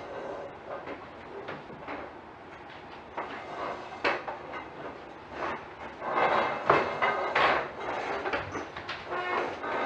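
Paper rustles on a table.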